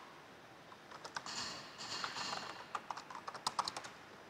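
Keys click quickly on a keyboard.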